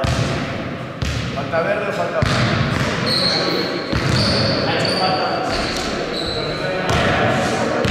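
A basketball bounces on a hard floor with echoing thuds.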